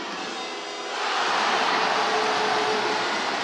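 A crowd roars loudly and cheers.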